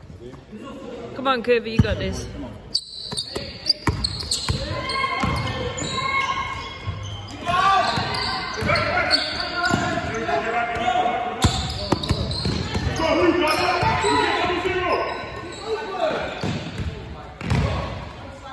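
Basketball shoes squeak on a wooden floor.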